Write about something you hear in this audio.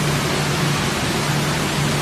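Water splashes and runs over a conveyor.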